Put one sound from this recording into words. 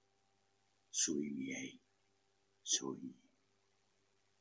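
A man speaks a few short words through a recording.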